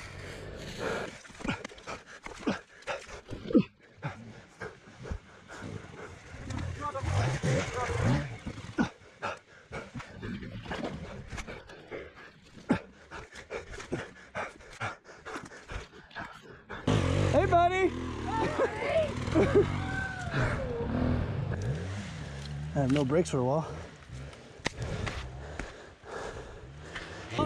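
Thick mud squelches and sucks as a stuck dirt bike is dragged.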